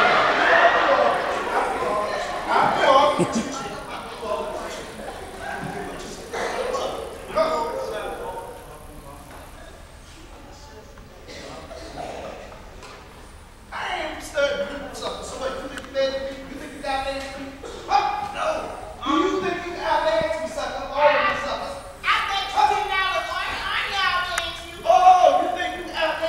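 Actors speak and call out on a stage, heard from across an echoing hall.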